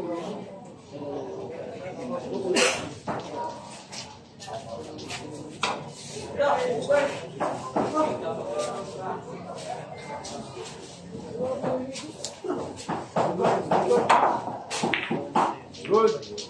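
A crowd of young men and women chatter and call out nearby.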